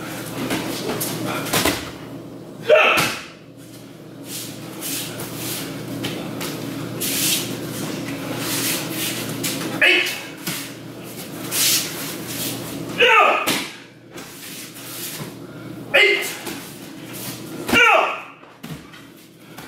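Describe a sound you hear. Bodies thump onto a padded mat.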